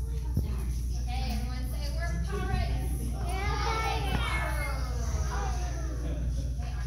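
Young children sing together in a room with some echo.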